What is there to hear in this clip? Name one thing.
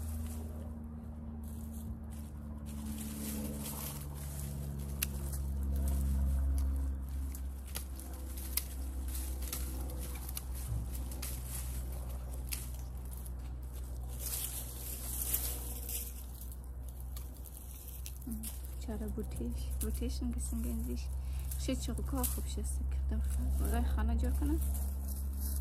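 Dry vines crackle and rustle as they are pulled.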